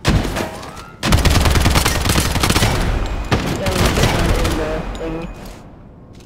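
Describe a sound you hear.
A gun fires rapid bursts with loud echoing blasts.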